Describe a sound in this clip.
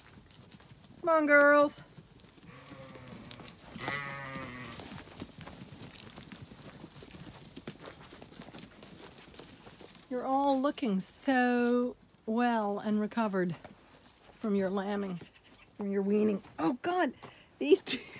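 Sheep bleat loudly close by, again and again.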